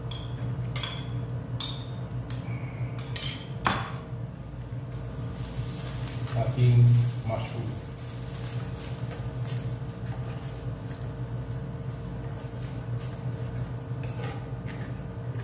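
Food sizzles softly in a pan.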